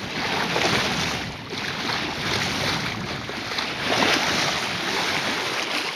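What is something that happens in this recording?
Dolphins splash as they surface.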